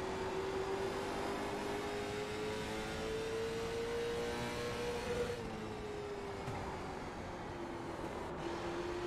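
A race car engine drones steadily, its pitch rising and then falling.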